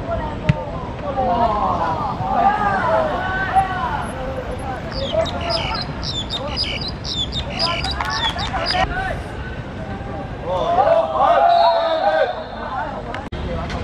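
Boys shout and call out to each other across an outdoor pitch.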